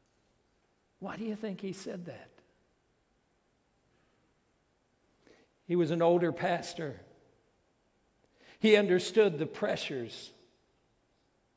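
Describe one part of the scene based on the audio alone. A middle-aged man preaches through a microphone in short, emphatic phrases with pauses.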